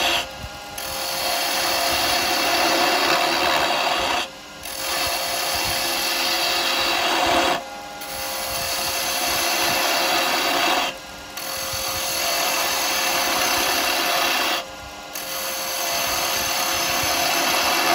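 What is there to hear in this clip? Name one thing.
A chisel scrapes and hisses against spinning wood, pausing now and then.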